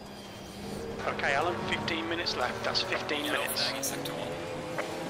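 Tyres squeal under hard braking and cornering.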